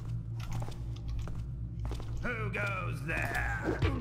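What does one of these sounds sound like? Footsteps fall on a stone floor.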